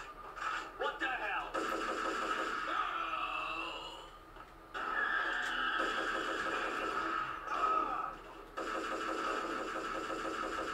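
Gunshots crack in quick bursts.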